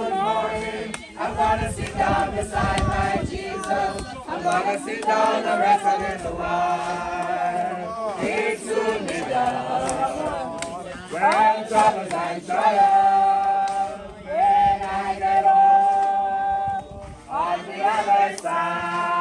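A crowd of men and women sings a slow hymn together outdoors.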